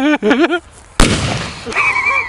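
A loud bang goes off close by.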